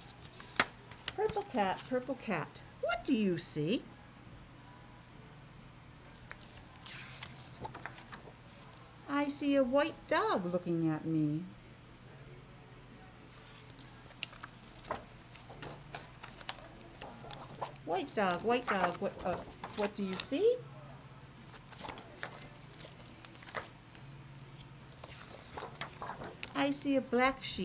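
A woman reads aloud close to the microphone, her voice muffled by a face mask.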